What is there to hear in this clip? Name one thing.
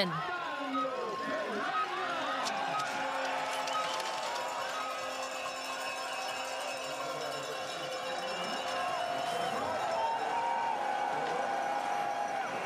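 A crowd cheers and shouts in the open air.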